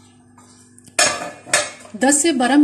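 A metal knife clinks against a metal pot.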